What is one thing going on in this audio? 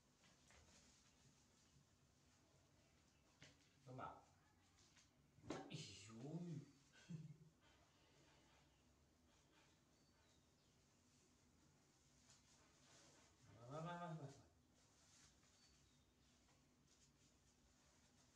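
A paper diaper crinkles and rustles.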